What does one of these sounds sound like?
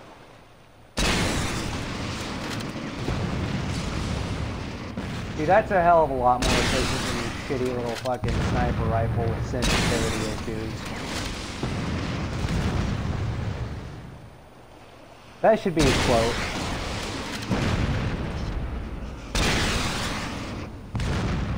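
Loud explosions boom and rumble again and again.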